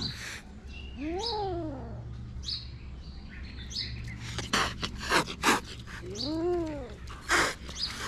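A kitten mews with a rising and falling cry.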